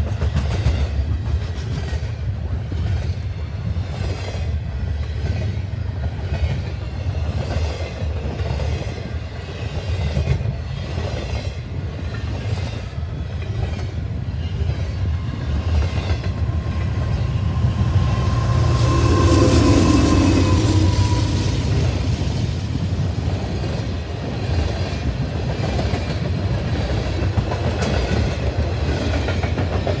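Train wheels clack rhythmically over the rail joints.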